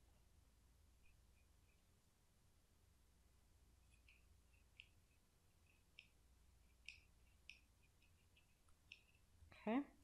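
Small scissors snip through paper.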